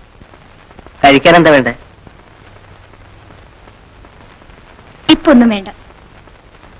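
A woman speaks briefly and sharply nearby.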